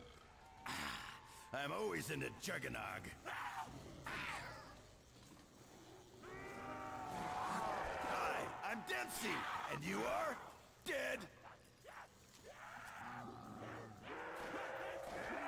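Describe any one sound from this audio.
A zombie snarls and groans close by.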